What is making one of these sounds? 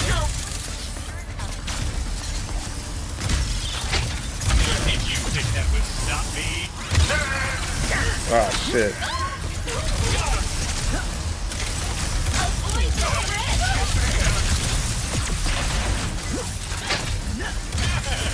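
Rapid blaster shots and explosions crackle loudly.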